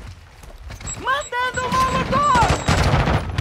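A young woman exclaims into a microphone.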